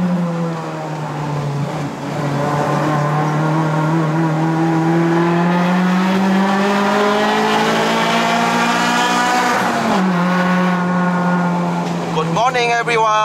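A car engine drones loudly, its pitch rising steadily as the car speeds up, then dropping at a gear change.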